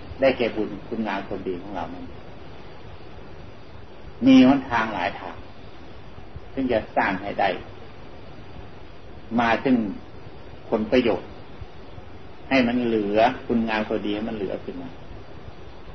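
An elderly man speaks calmly in short phrases with pauses.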